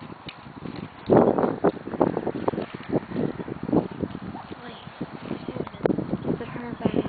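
Horse hooves thud on soft dirt as a horse walks close by.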